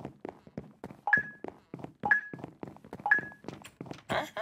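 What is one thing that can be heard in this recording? Short electronic countdown beeps sound three times.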